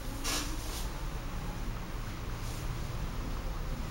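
A nylon cape rustles and flaps as it is shaken out.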